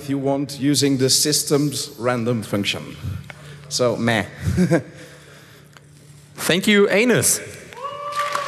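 A man speaks into a microphone, amplified over loudspeakers.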